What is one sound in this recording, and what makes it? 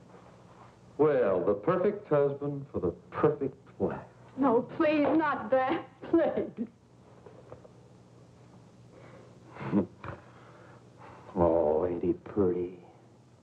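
A woman answers a man calmly.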